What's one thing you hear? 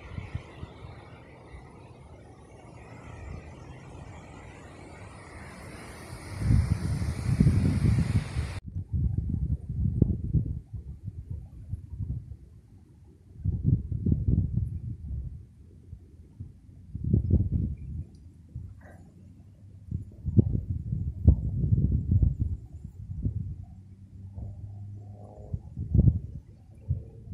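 Wind gusts rumble against the microphone outdoors.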